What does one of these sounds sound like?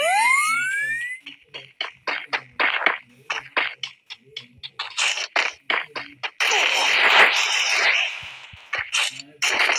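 Footsteps patter rapidly on hard ground.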